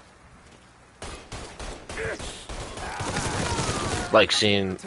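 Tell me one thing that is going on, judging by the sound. A gun fires rapid bursts of shots.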